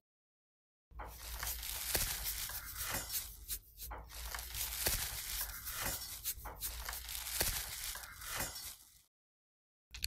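An electric facial brush buzzes against skin.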